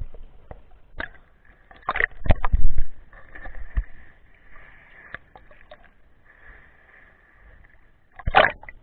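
Small waves slosh and lap at the water's surface.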